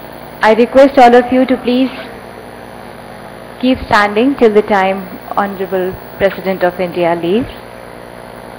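A young woman speaks clearly through a microphone and loudspeakers.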